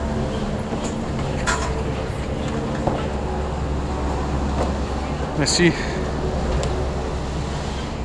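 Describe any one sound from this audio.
A bicycle's wheels click and clatter on wooden boards.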